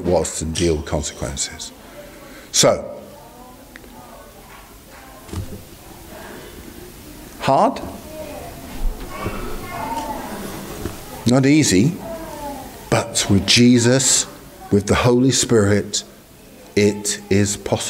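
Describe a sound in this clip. A middle-aged man speaks with animation into a microphone, in a room with some echo.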